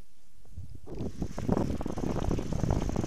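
Knobby mountain bike tyres roll over asphalt.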